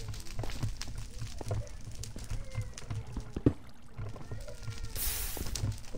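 Fire crackles and pops.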